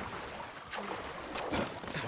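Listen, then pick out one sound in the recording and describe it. Water splashes.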